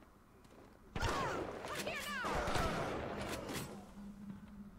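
A gun fires with a loud crackling burst.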